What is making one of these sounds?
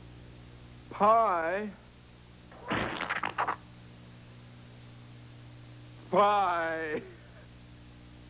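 A woman shrieks with laughter.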